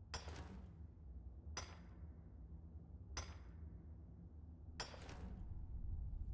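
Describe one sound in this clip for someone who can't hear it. A pickaxe strikes rock with sharp metallic clinks, at a slow, even pace.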